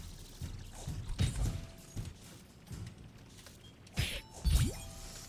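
Cartoonish punching and whooshing game effects sound in quick bursts.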